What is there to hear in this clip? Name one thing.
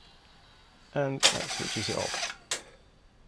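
A cassette deck mechanism whirs and clunks briefly.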